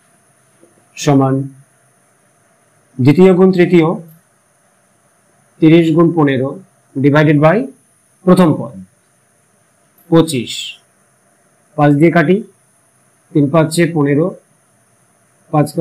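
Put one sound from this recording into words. A man speaks calmly in short phrases with pauses, like a teacher explaining.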